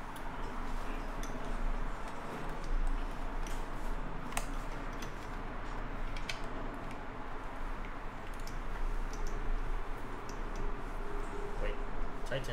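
Small plastic parts click and tap as hands work on a device.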